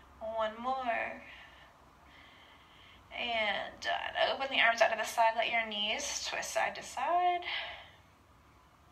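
A young woman speaks calmly and clearly nearby.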